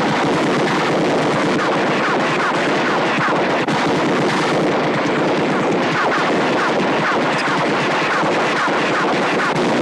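Bullets strike rock and ricochet with whining sounds.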